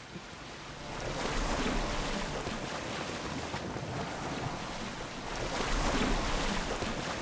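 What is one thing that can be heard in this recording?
Water rushes along the sides of a moving boat.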